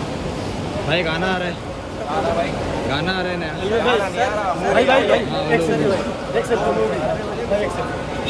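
A young man speaks up close.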